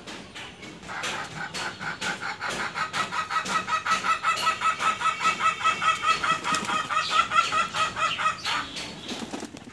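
A hen clucks loudly in a long run of quick, repeated calls.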